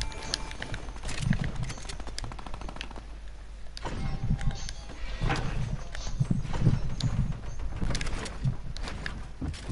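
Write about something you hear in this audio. Game footsteps thud on wooden stairs.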